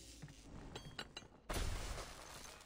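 Gunfire rings out in a short burst.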